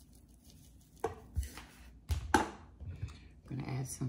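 A plastic bottle is set down on a table with a knock.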